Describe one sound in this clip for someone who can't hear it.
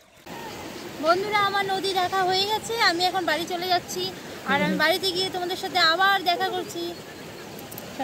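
A young woman talks with animation, close up.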